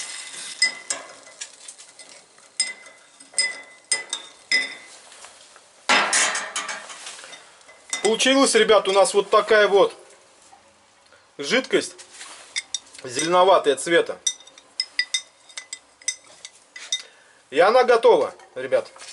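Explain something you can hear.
A metal spoon scrapes and clinks against a glass jar.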